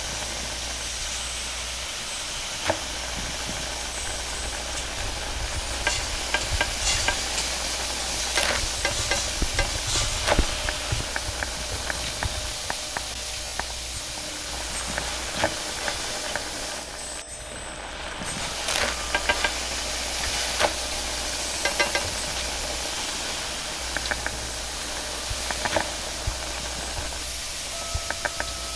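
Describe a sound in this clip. Food sizzles steadily in a hot wok.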